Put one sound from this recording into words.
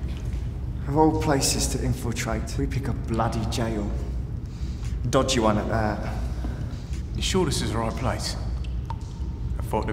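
A man speaks quietly and tensely nearby.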